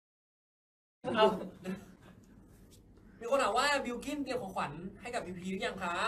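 Young men talk and laugh with animation close by.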